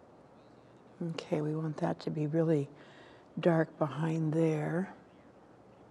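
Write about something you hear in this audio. An elderly woman speaks calmly, close to a microphone.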